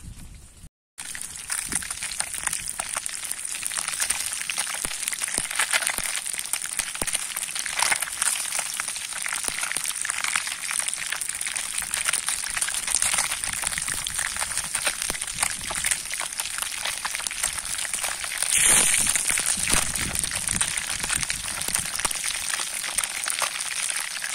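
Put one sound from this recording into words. Food sizzles and crackles loudly in hot oil.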